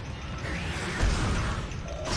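A weapon fires with a loud burst.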